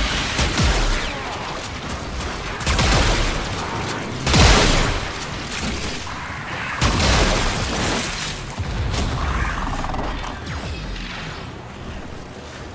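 Loud blasts boom in bursts.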